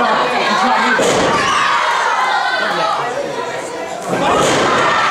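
A wrestler's body slams onto the ring mat with a loud thud.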